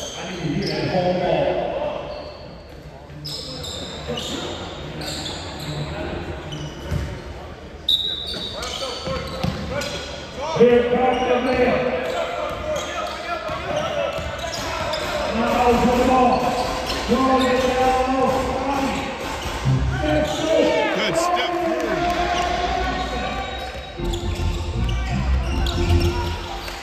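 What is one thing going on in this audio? Sneakers squeak sharply on a hardwood court in an echoing gym.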